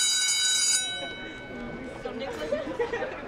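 Teenage girls chatter softly nearby.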